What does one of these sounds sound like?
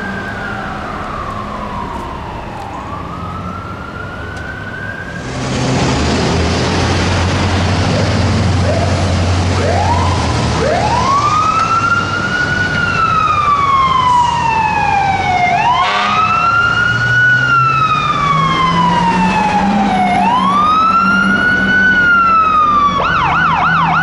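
A fire truck siren wails, rising and falling, close by.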